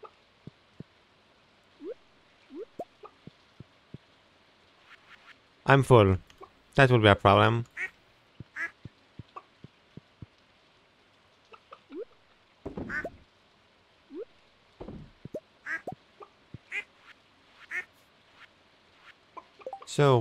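Short game sound effects pop and click.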